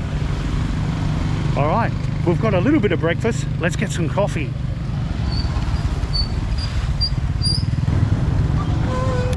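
A motorbike engine rumbles nearby.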